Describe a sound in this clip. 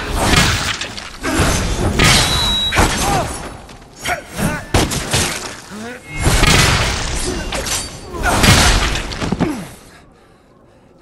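Loud impacts and blasts crash repeatedly.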